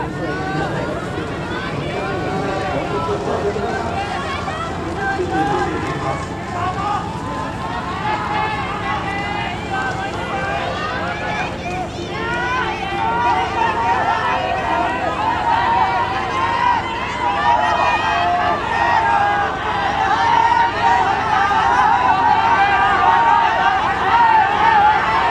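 A crowd of spectators shouts and cheers, growing louder.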